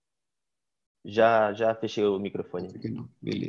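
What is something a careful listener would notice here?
A second man speaks calmly over an online call.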